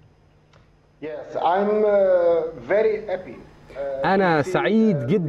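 An older man speaks over an online call.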